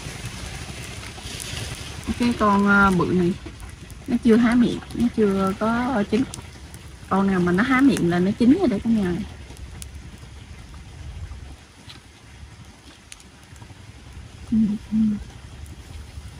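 Metal tongs click against shells.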